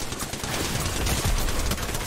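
A video game explosion booms.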